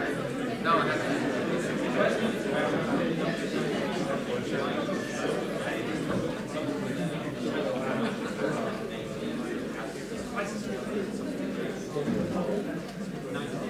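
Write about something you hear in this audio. A crowd of men and women chatter all around in a large echoing hall.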